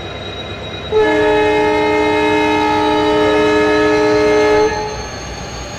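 A steam locomotive whistle blows loudly and steadily.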